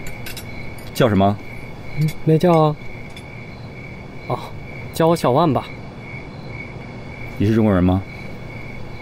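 A young man talks in short phrases nearby.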